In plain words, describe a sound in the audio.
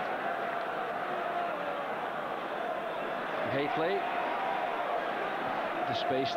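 A large stadium crowd murmurs and roars.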